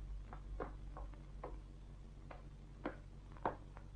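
Footsteps thud slowly on wooden stairs.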